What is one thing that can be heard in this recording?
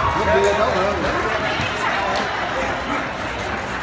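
Shoes scuff and tap on a hard floor.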